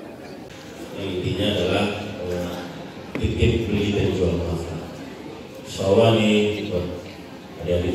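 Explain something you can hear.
A man speaks through a microphone over loudspeakers in an echoing hall.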